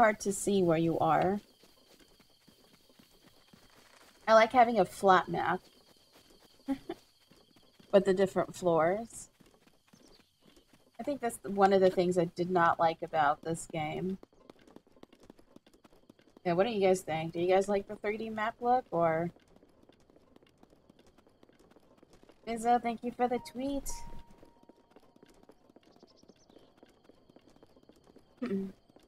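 A woman talks with animation into a close microphone, in short bursts.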